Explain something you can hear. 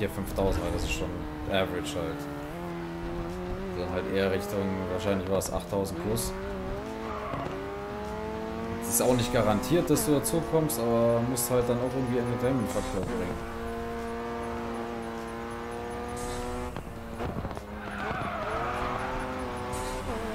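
A racing car engine roars and whines, rising and falling in pitch as it shifts gears.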